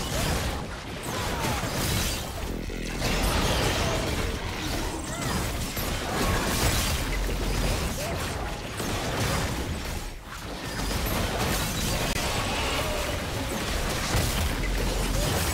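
Game spell effects crackle and blast in a busy fight.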